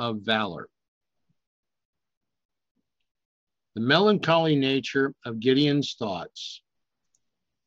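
An elderly man speaks calmly over an online call.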